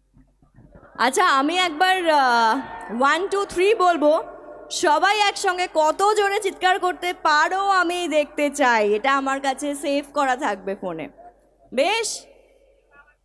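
A young woman sings loudly through a microphone and loudspeakers.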